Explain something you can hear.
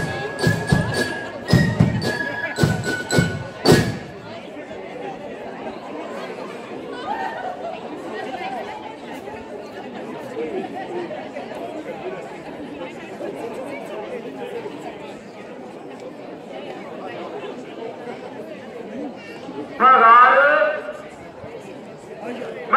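A large crowd murmurs and chats outdoors.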